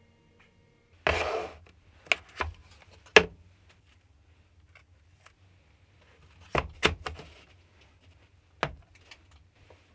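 Hard tools clack against each other as they are handled.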